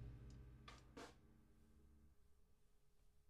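Drums and cymbals are struck, then the music ends and a cymbal rings out.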